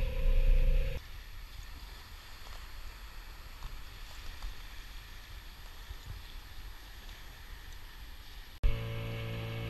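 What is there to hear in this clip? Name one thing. Small waves lap gently on a pebbly shore.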